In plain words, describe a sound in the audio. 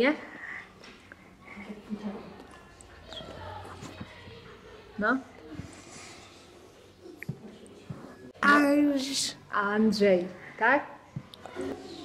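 A young boy speaks into a microphone close by, pausing between phrases.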